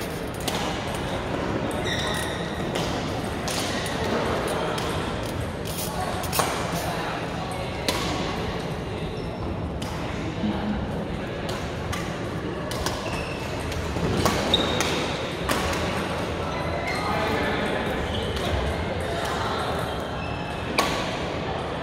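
Rackets strike shuttlecocks with sharp pops in a large echoing hall.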